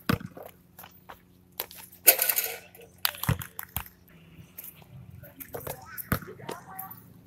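A basketball bounces with dull thuds on a hard court.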